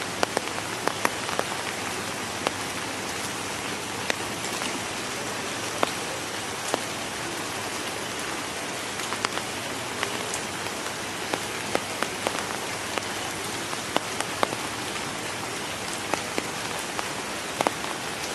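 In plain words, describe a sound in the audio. A cassowary's bill pecks at wet ground.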